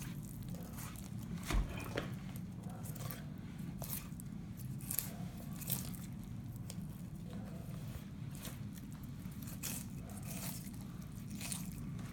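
A knife slices softly through fish flesh with faint scraping against bone.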